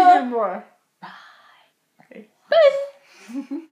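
A girl talks and laughs close to the microphone.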